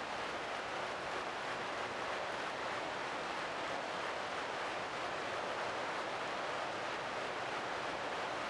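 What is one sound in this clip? Bicycle wheels whir steadily along a road.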